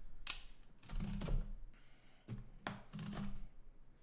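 A blade slices through packing tape.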